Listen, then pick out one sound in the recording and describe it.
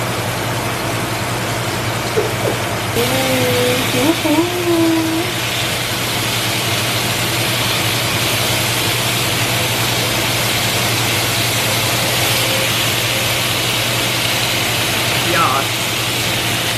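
Meat sizzles in a hot frying pan.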